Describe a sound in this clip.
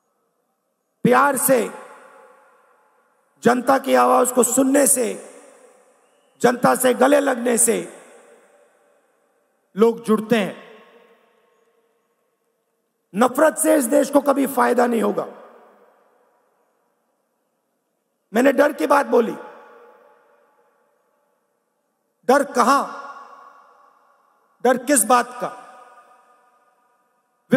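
A man speaks forcefully in short bursts through a microphone, echoing in a large open space.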